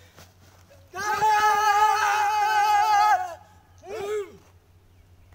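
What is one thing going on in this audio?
Men shout loudly together outdoors.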